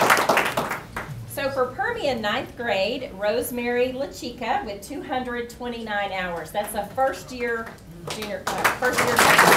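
A woman speaks into a microphone, heard over a loudspeaker in a room.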